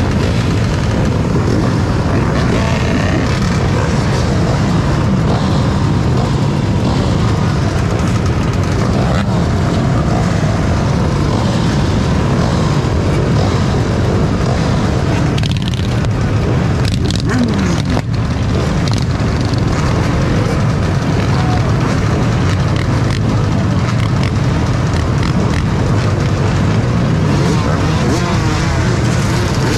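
Many motorcycle engines idle and rumble loudly nearby.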